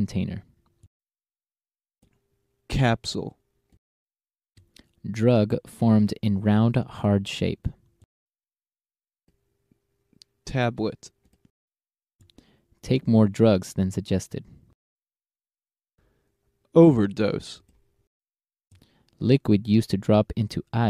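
A man speaks clearly and calmly into a close microphone, in short phrases with pauses.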